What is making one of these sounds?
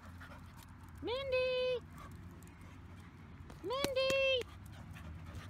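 A dog barks loudly nearby.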